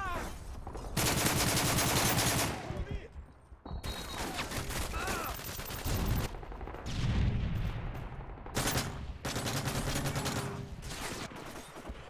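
Rapid gunfire bursts loudly in short volleys.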